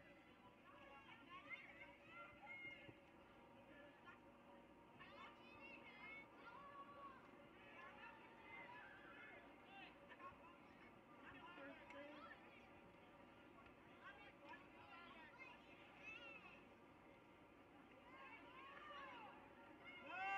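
A crowd of people chatter and shout outdoors at a distance.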